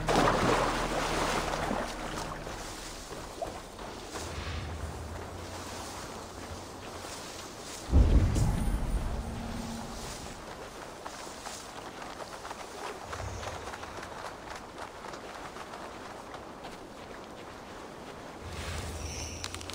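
Tall grass rustles.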